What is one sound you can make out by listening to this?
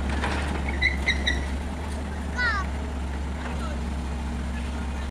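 A diesel excavator engine rumbles as it works.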